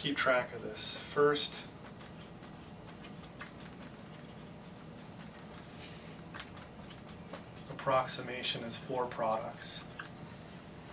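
A man speaks calmly, like a teacher explaining, close by.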